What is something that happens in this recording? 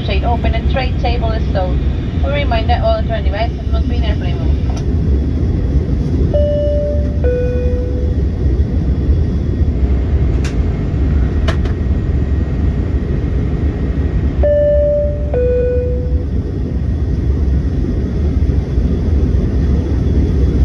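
A jet engine roars steadily, heard from inside an aircraft cabin.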